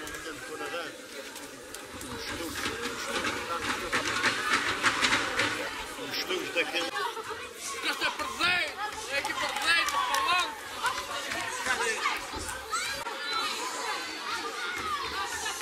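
A crowd of men and women shouts and chatters excitedly outdoors.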